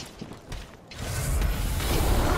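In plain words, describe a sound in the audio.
Flames burst up with a roaring whoosh.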